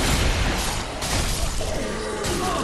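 A magic blast bursts with a bright crackle.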